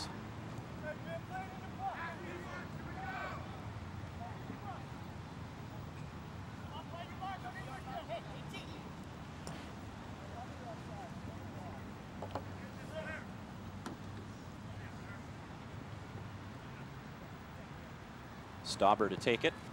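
Spectators chatter faintly in the distance outdoors.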